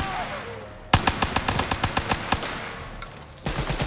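A gun fires in rapid bursts, with loud sharp cracks.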